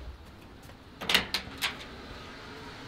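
A door handle clicks and rattles.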